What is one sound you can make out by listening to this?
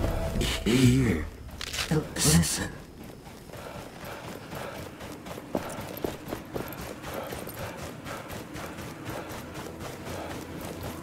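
Footsteps run quickly over dirt and stones.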